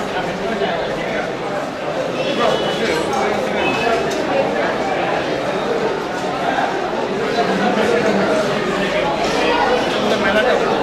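A crowd of men and women chatter nearby.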